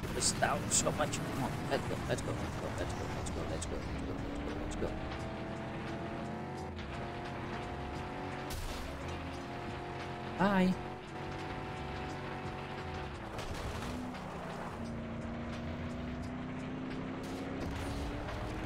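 A truck engine roars and revs up through its gears.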